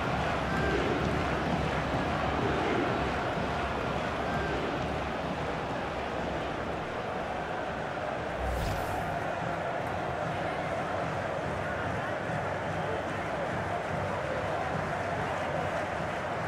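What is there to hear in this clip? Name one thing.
A large crowd roars and cheers loudly.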